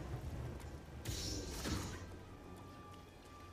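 Electric sparks crackle and hiss.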